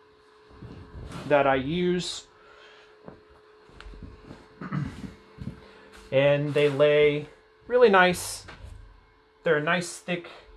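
Heavy cloth rustles and swishes as it is spread out.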